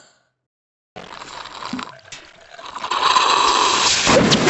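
A cartoon cat slurps loudly through a straw.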